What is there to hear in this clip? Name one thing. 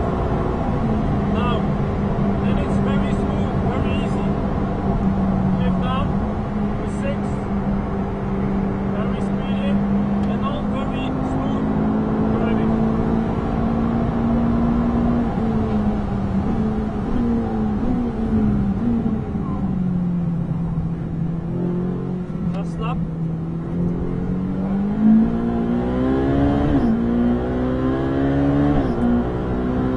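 A race car engine roars loudly from inside the cabin, holding a high drone, then dropping in pitch as the car slows and rising again as it speeds up.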